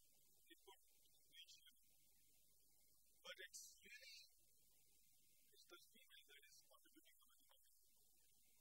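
A man speaks calmly in an echoing room, heard from a distance.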